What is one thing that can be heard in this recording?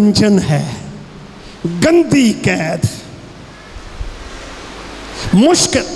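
An older man preaches with animation into a microphone, heard through loudspeakers.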